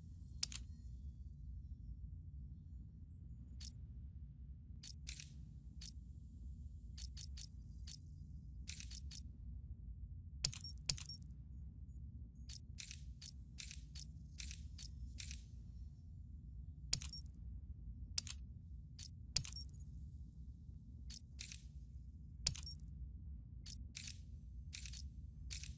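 Short menu clicks and blips sound as selections change.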